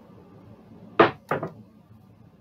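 Dice click on a table.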